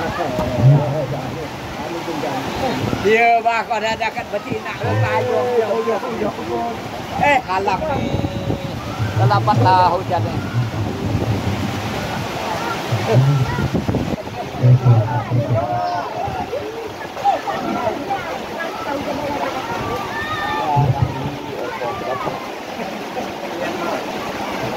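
Rain pours steadily outdoors.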